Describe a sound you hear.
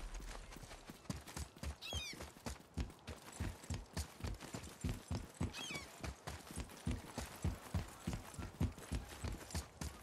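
Heavy footsteps thud steadily on stone.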